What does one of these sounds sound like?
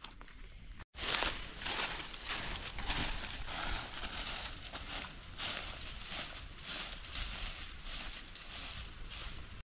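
Footsteps crunch through dry leaves outdoors.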